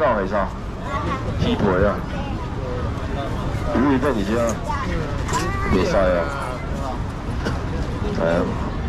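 A crowd murmurs steadily outdoors.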